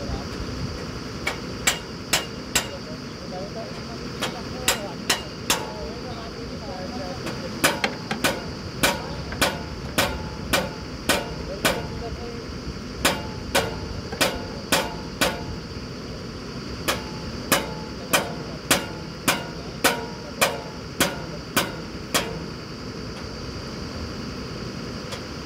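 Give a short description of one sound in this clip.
A drilling rig engine runs with a steady drone.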